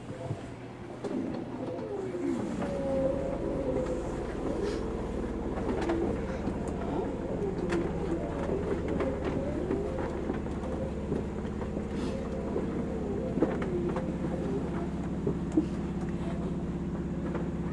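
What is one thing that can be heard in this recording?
An electric train's motor whines and hums as the train starts moving.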